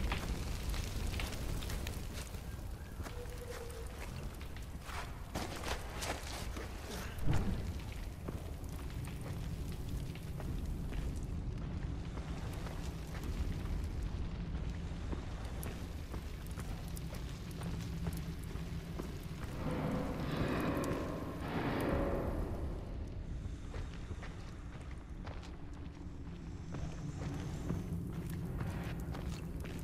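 A torch flame crackles and roars steadily.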